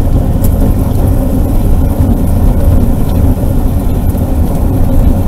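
Tyres roll and rattle over a paved road.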